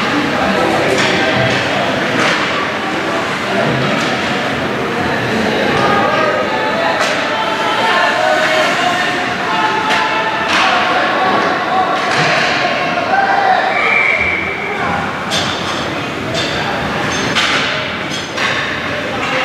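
Hockey sticks clack against the puck in a large echoing rink.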